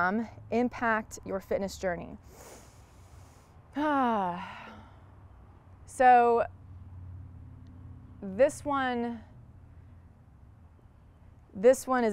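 A young woman speaks calmly and clearly, close to a microphone, in short phrases with pauses.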